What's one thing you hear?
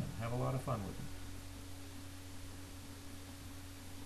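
A sheet of cardboard scrapes softly across a table.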